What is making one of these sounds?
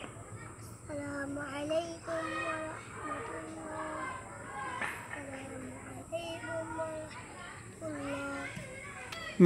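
Young boys chant in unison nearby.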